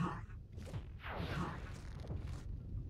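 Fireballs whoosh past.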